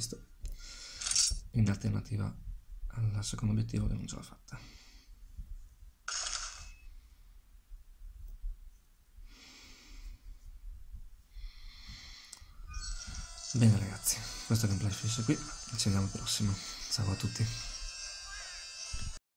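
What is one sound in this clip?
A handheld game console plays short electronic sound effects.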